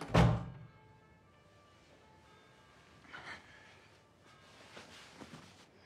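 Bedsheets rustle as someone shifts in bed.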